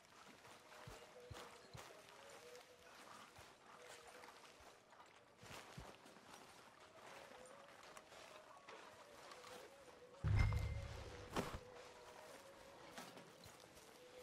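Footsteps crunch softly through grass and dirt.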